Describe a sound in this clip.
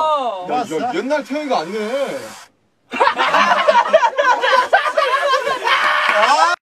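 A group of young men laugh loudly and excitedly, close by.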